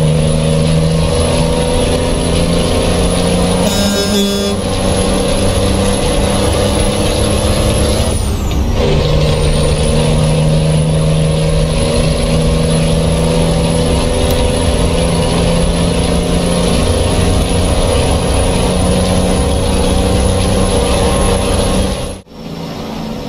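A heavy truck engine drones steadily.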